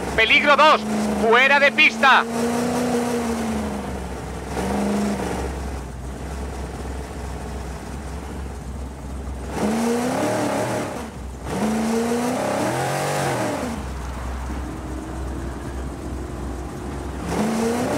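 Tyres crunch over loose gravel and dirt.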